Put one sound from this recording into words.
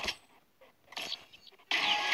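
A short electronic game chime sounds.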